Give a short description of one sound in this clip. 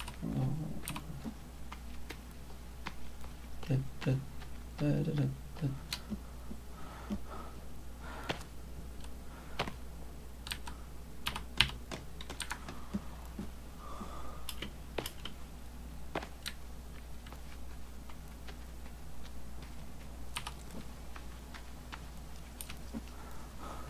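Hands knock and scrape on wood while climbing.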